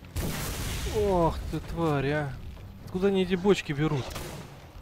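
A monster growls and snarls up close.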